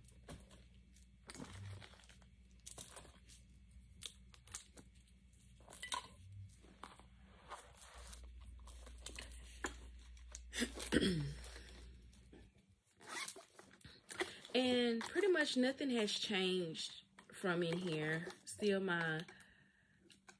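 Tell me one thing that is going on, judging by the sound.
A fabric pouch rustles and crinkles as it is handled.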